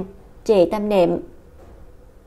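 A young woman speaks softly close by.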